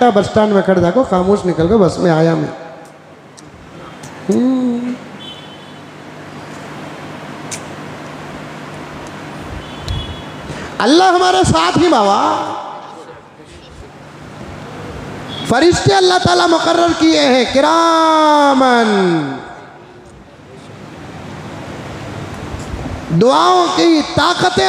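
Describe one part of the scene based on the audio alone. An elderly man speaks through a microphone in a slow, emphatic preaching voice, with long pauses.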